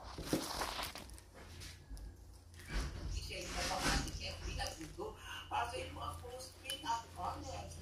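A plastic wrapper crinkles in a hand.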